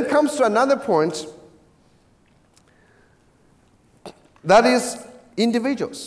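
A middle-aged man speaks calmly into a microphone, heard in a large room with a slight echo.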